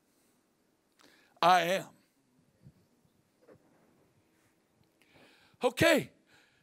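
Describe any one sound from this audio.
A middle-aged man speaks in bursts through a microphone over loudspeakers.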